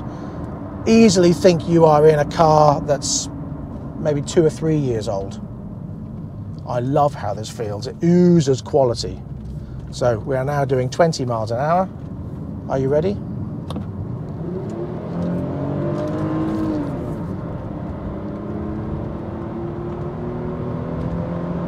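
Tyres rumble on the road inside a moving car.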